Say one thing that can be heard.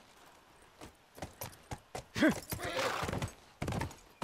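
A horse walks, hooves clopping on pavement.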